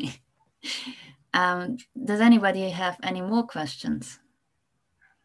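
A young woman speaks with animation, heard through an online call.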